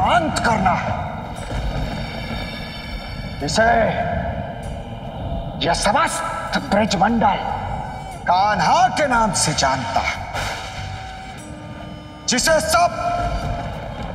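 A man speaks forcefully and dramatically, close by.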